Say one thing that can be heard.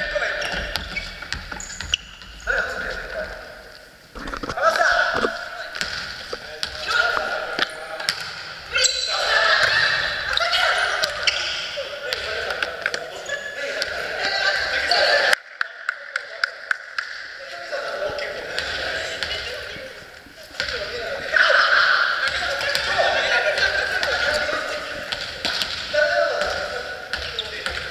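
Young men and women call out and chatter in a large echoing hall.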